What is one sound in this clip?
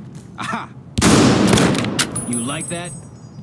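A gun fires a single loud shot that echoes down a hallway.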